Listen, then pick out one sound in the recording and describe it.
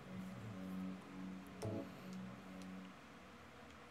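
A soft tone chimes.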